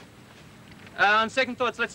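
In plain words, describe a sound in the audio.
A man speaks calmly.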